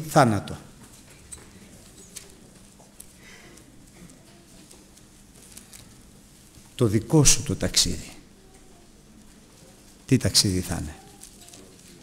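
A middle-aged man speaks with emphasis through a microphone in a large echoing hall.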